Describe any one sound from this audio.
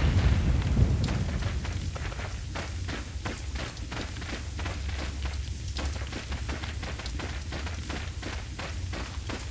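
Footsteps crunch steadily on rough ground.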